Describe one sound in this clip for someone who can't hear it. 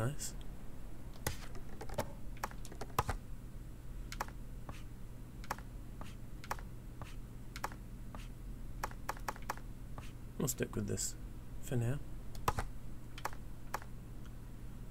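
Short menu clicks tick repeatedly.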